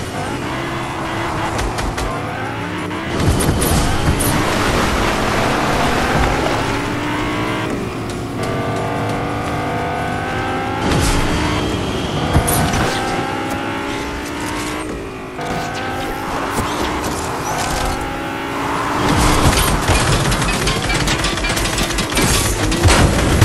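A car engine hums and revs as a car drives over grass.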